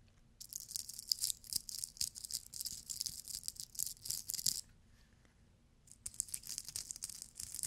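Sequined objects crackle and scratch close against a microphone.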